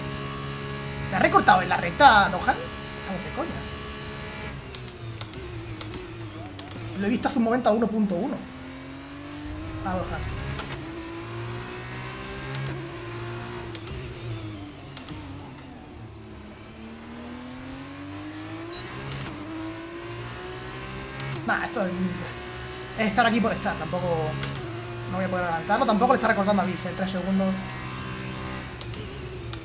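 A racing car engine whines and shifts through the gears.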